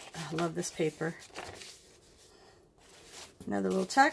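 Stiff paper rustles as a page flap is lifted.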